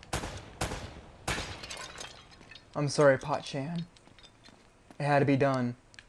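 A ceramic urn shatters.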